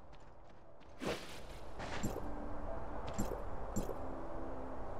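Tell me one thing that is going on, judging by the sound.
Magic whooshes and chimes.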